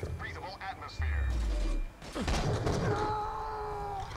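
Gunfire rattles from a video game.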